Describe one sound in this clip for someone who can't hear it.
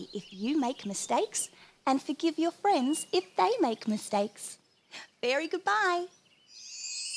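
A young woman speaks cheerfully and brightly, close by.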